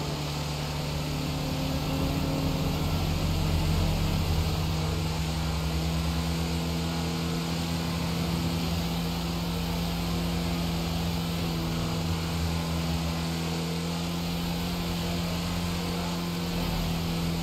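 Tyres hum on asphalt.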